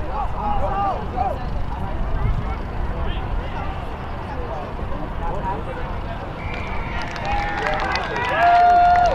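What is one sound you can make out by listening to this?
Young players shout and call to each other outdoors on an open field.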